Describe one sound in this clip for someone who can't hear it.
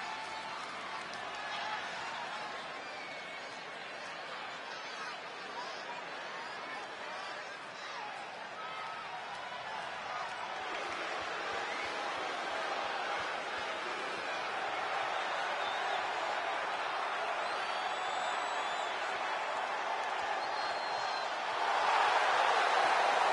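A large crowd cheers and roars in a big echoing arena, growing louder toward the end.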